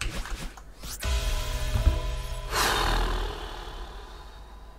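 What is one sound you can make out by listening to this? A bright chime rings out as a game character collects a winged berry.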